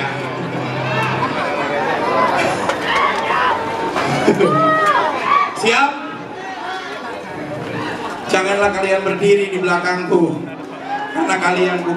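A man speaks loudly into a microphone over a loudspeaker.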